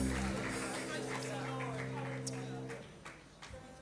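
A choir of women holds a sung note and then stops.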